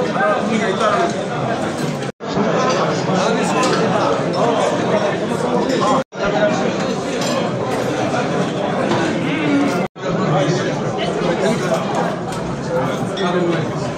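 Many men chat and murmur all around in a busy, echoing hall.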